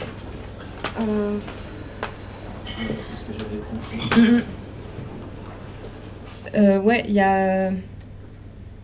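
A young person speaks into a microphone close by, in short halting phrases.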